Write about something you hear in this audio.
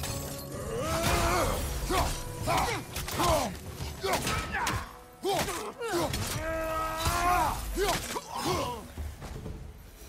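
Heavy blows and magic blasts crash and boom during a fight.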